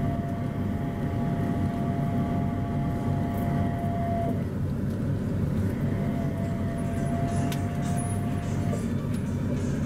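A train's motor whines with a steady tone.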